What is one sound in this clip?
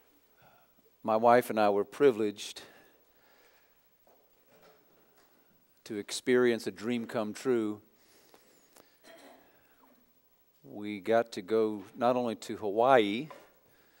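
A man speaks slowly and clearly through a microphone in a large, echoing room, with pauses between phrases.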